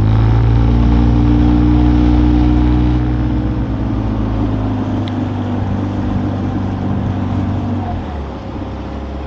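A boat's outboard motor hums steadily.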